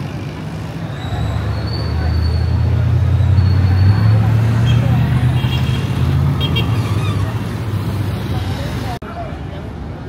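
A bus engine drones loudly close by.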